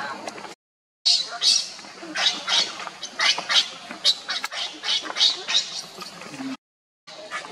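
A baby monkey squeals loudly and repeatedly, close by.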